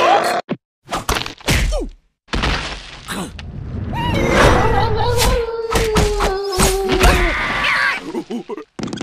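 Cartoon creatures scuffle, with whooshes and thuds of blows.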